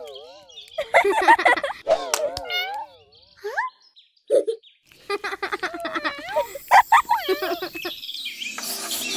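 A cartoon kitten squeaks and chatters in a high, playful voice.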